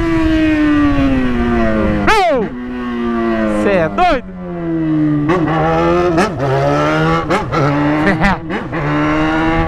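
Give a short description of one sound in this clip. A motorcycle engine revs up and down repeatedly.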